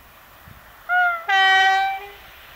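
A train horn blares loudly and briefly.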